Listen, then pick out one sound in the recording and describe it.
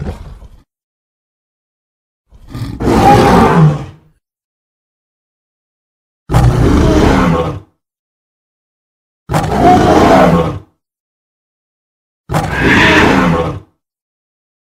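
A gorilla roars in loud, repeated bursts.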